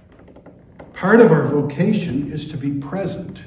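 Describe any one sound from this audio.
An older man speaks calmly into a nearby microphone.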